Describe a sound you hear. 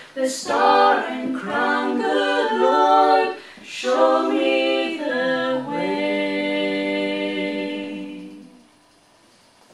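A small group of women and a man sing together in close harmony in a room with a slight echo.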